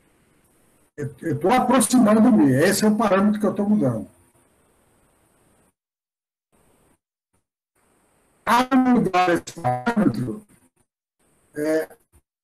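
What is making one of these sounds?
A middle-aged man speaks with animation over an online call.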